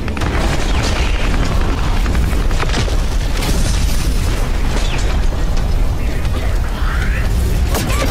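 Flames roar loudly and steadily.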